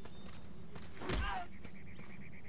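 A heavy body thuds onto the ground.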